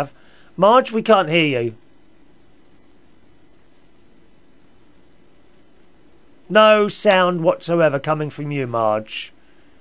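A middle-aged man speaks with animation close to a microphone, pausing between phrases.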